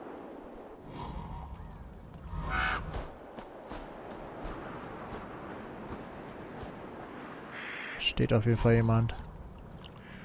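A young man talks into a close microphone in short bursts.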